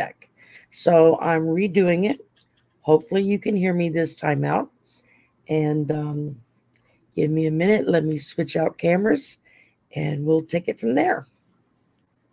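An elderly woman speaks calmly and closely into a microphone, in short phrases.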